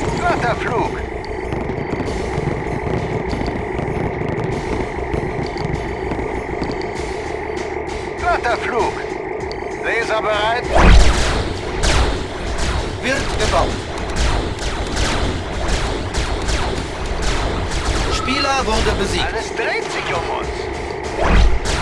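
Laser weapons zap and crackle in quick bursts.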